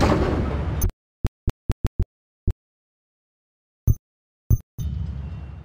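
Short menu clicks tick a few times.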